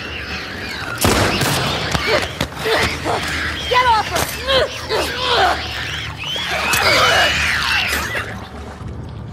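A monster shrieks and gurgles up close.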